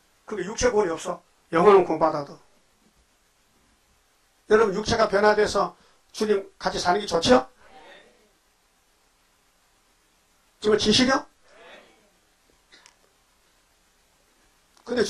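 An elderly man preaches forcefully into a microphone in bursts, with pauses.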